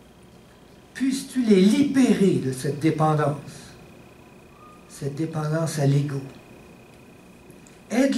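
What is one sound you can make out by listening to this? A middle-aged man speaks calmly into a headset microphone, with pauses.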